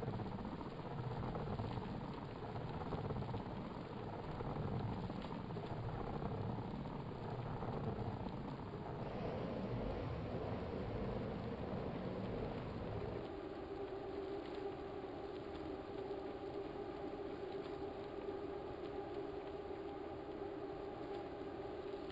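An indoor bike trainer whirs steadily as a rider pedals.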